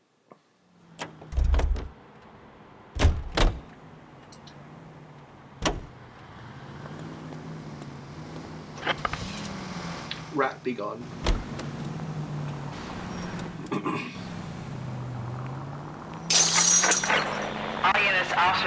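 A car engine idles and revs as the car drives off.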